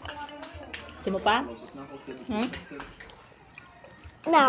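A young girl talks close by in a high, childish voice.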